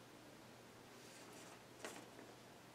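Paper rustles close by.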